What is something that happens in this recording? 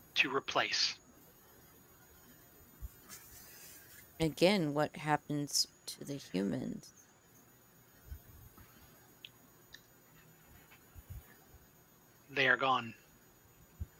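Men talk in short bursts over an online call.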